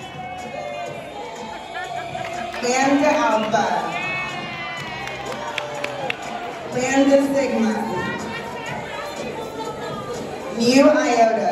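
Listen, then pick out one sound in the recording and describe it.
A large crowd of women chatters and cheers loudly in a big echoing hall.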